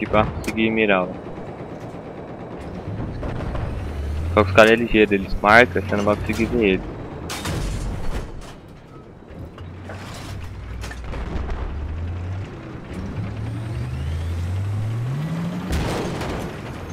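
A heavy tank engine rumbles low and steadily, now and then revving up.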